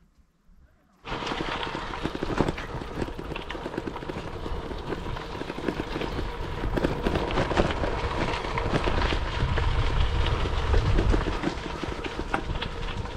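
Bicycle tyres crunch and rattle over gravel.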